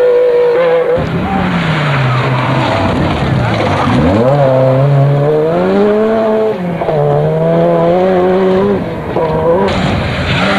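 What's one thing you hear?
A Sierra Cosworth rally car's turbocharged four-cylinder engine roars past at full throttle, shifting gears, and fades away.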